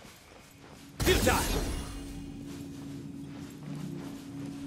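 A loud magical whoosh and chime bursts out, then rings on.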